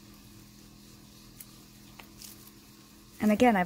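Soft clay squishes as hands knead it.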